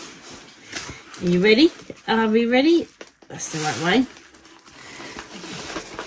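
A paper roll rustles and crackles.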